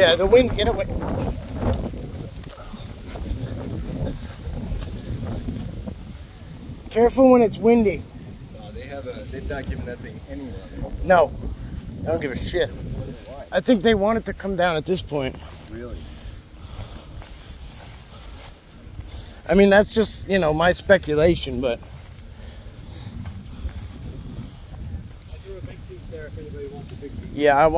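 A man talks close by, calmly, in short bursts.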